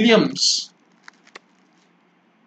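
Glossy cards slide and rustle against each other in hands close by.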